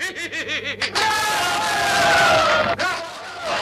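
A group of men sing together loudly.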